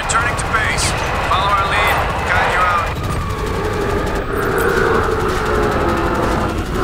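A helicopter engine roars steadily.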